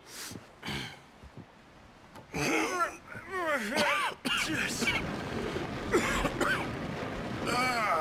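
A heavy wooden crate scrapes as it is shoved.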